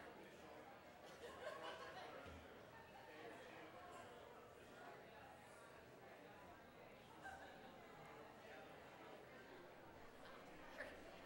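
A crowd of men and women chat quietly in a large echoing hall.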